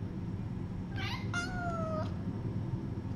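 A kitten mews briefly.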